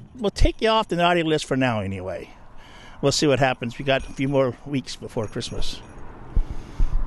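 A man speaks animatedly into a microphone, close by.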